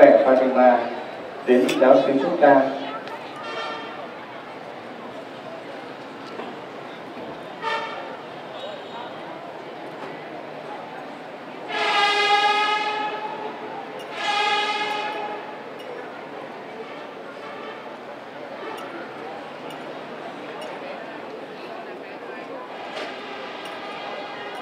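A crowd murmurs steadily in the background.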